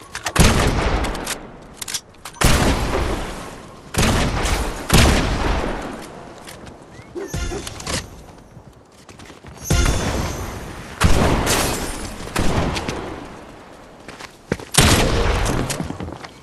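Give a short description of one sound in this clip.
Building pieces slam into place in repeated loud bursts.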